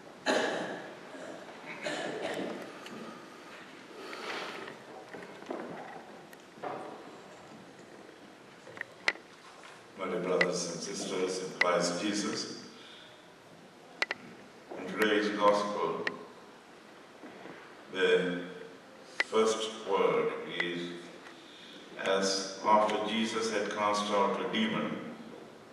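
A man speaks slowly and solemnly into a microphone in a large echoing hall.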